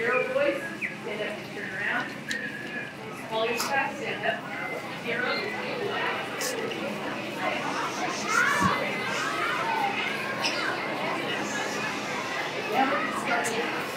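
A crowd of children chatters and murmurs.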